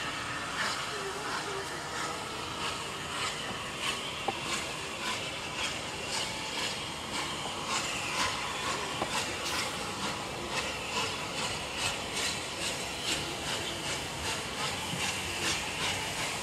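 Steam hisses from a locomotive.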